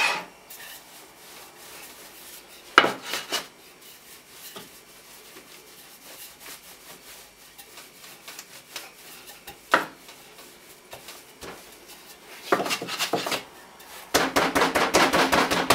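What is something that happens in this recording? A wooden rolling pin rolls over dough on a floured board.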